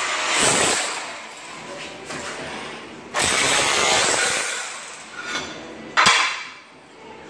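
A power tool rattles loudly against floor tile.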